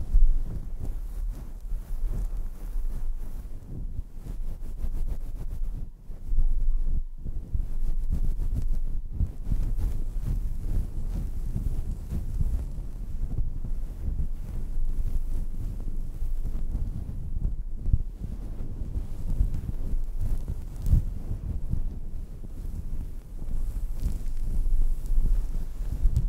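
Fingers rub and scratch a fluffy microphone cover up close, in low muffled rustles.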